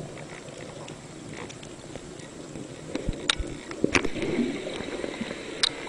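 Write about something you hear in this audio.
A diver splashes at the surface.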